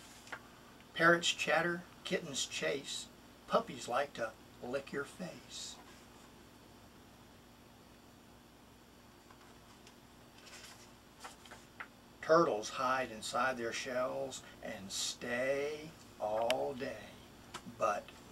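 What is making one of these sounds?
A middle-aged man reads aloud close by, with expression.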